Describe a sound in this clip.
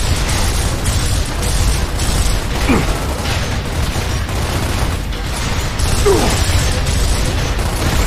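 Heavy gunfire rattles in rapid bursts.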